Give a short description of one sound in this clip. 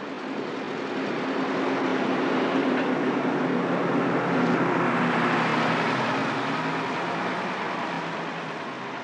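A bus engine rumbles loudly as the bus passes close by.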